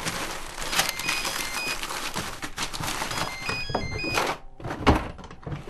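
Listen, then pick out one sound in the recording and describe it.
Papers rustle and crinkle as they are shuffled through quickly.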